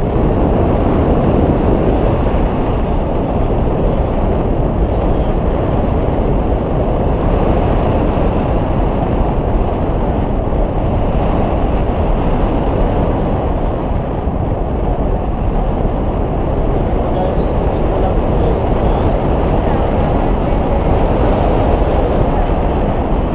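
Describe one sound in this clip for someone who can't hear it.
Strong wind roars steadily against a microphone outdoors.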